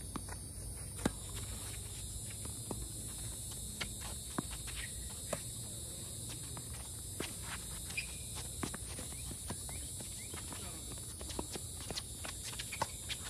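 Tennis rackets strike a ball back and forth outdoors.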